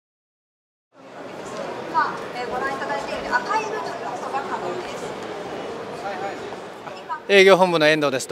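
A crowd murmurs and chatters in a busy hall.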